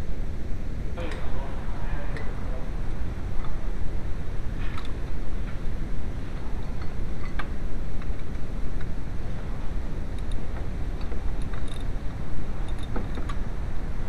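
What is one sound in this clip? A metal tool clicks and scrapes against a bolt.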